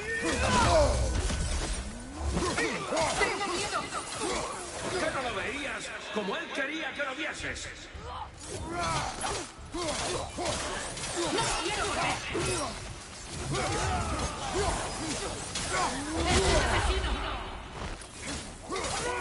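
Blades clash and thud in a fierce fight.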